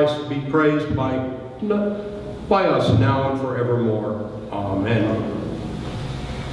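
An elderly man speaks calmly through a microphone in an echoing hall.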